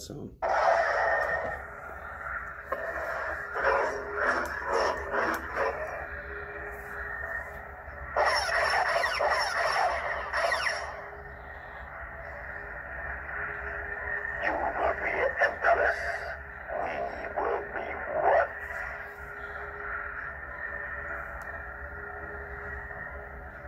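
A toy light sword hums steadily with an electric buzz.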